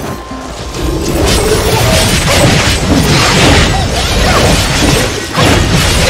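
Sword slashes and energy blasts crash and whoosh rapidly.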